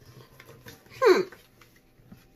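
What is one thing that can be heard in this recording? A woman lets out a short falling sigh.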